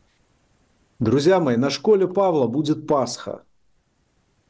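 A man speaks calmly and close to a microphone, as over an online call.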